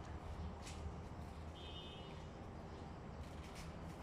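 Banana stalks rustle and thump as they are handled.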